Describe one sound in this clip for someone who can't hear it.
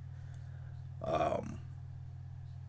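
An older man speaks briefly in a low, calm voice.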